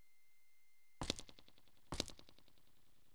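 Footsteps tap twice on a stone floor.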